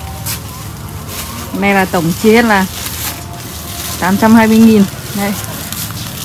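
Plastic bags rustle as they are moved about.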